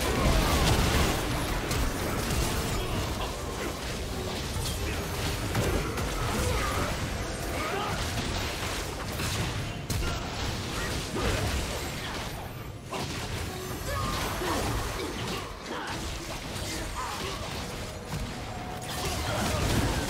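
Magic spells crackle and burst in a fantasy game battle.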